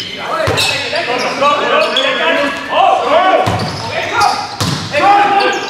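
A volleyball is hit with sharp smacks.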